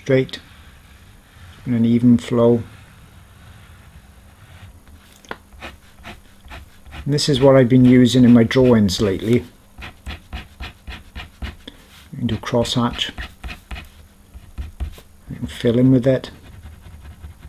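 A marker pen scratches softly across paper.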